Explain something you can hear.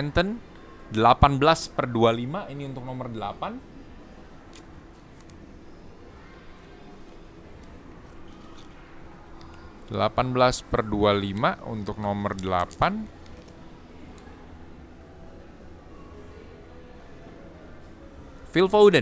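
Trading cards in plastic sleeves rustle and slide between fingers.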